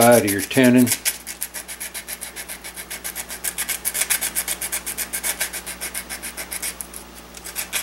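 Metal scrapes in quick, even strokes.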